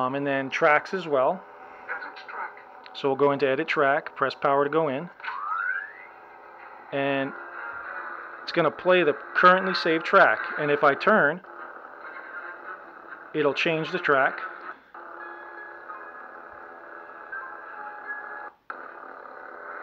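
A toy lightsaber hums steadily.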